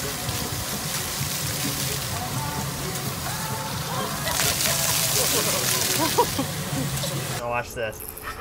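Water from fountain jets sprays and splashes steadily.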